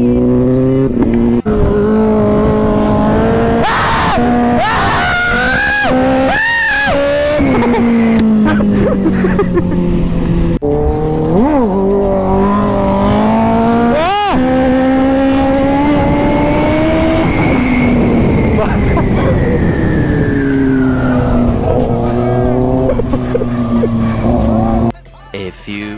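A motorcycle engine roars loudly and revs up and down at high speed.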